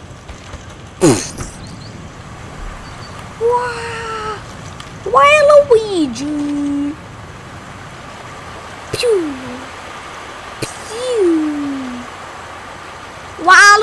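A young boy talks excitedly close to a microphone.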